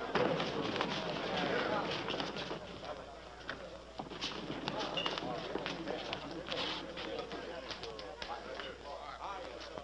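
A crowd of men shouts and clamours in a large room.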